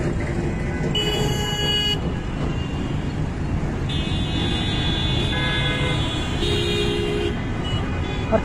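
Vehicle horns honk in the traffic.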